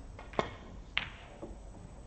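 Snooker balls knock together.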